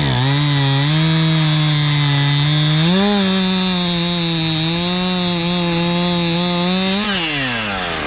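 A chainsaw engine roars loudly, cutting through a log.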